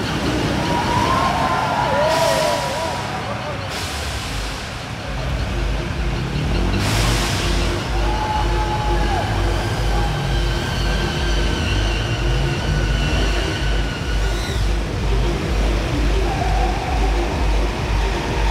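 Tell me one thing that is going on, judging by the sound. Stage spark fountains hiss.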